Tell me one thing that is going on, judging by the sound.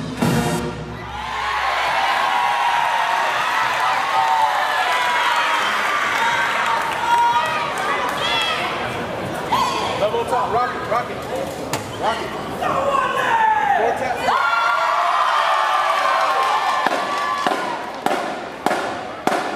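A crowd cheers and screams loudly in a large echoing hall.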